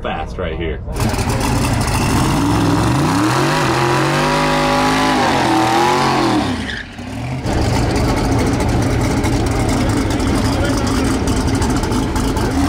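A race car engine roars and revs loudly.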